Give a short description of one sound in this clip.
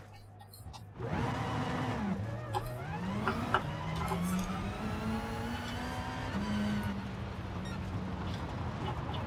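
A racing car engine revs and whines through its gears.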